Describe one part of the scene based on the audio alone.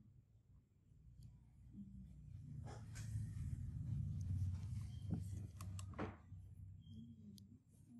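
A metal tool scrapes softly against skin.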